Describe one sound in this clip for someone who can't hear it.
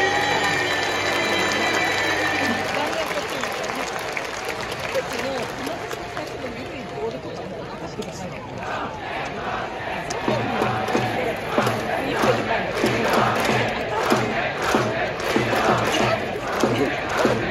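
A large stadium crowd chants and cheers in a rhythm outdoors.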